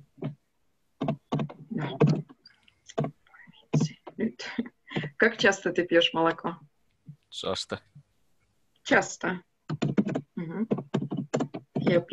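A woman speaks calmly and clearly over an online call, pausing between phrases.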